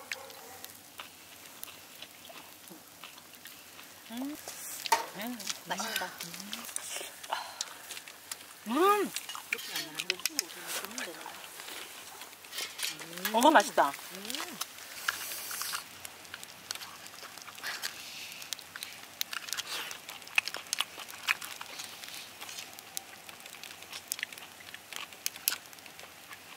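Food sizzles and crackles on a grill over hot coals.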